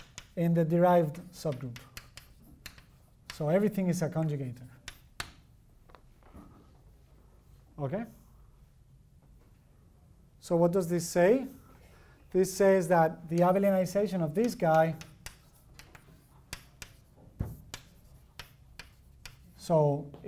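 A man lectures in a calm, clear voice.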